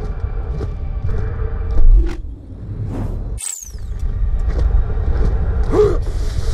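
A low, steady rumble of wind drones in the background.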